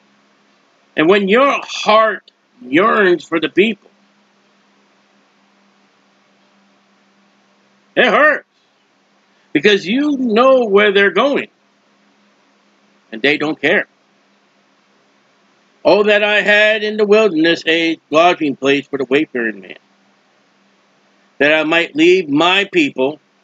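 A middle-aged man speaks calmly into a close microphone, in bursts with pauses.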